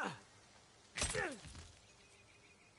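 A climber thuds against a rock wall.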